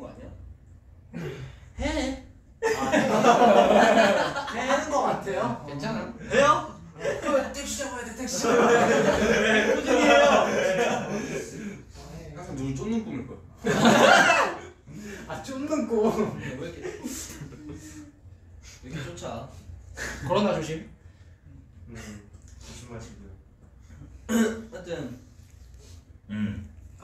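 Several young men talk and laugh together close by.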